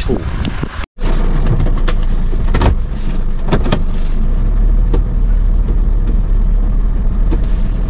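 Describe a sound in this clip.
Tyres roll over a snowy road.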